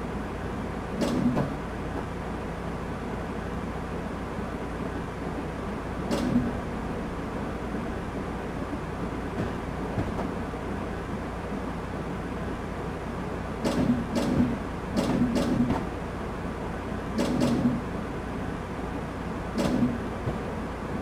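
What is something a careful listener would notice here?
Train wheels clatter over rail joints now and then.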